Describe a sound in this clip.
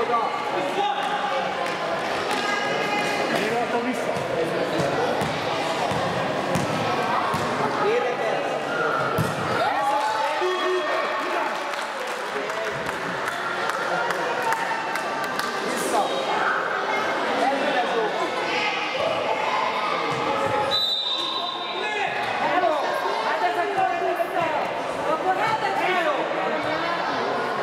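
Young girls shout and call out in a large echoing hall.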